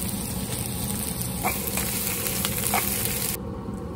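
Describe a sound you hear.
A wooden spatula scrapes and stirs in a pan.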